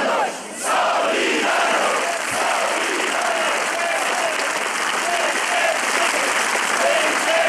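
A large crowd cheers and shouts in a steady roar.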